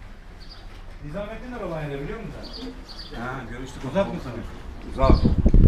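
A man talks nearby in a calm, conversational voice.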